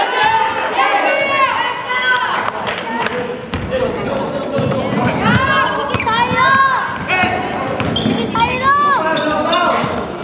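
Sneakers squeak sharply on a hard gym floor, echoing around a large hall.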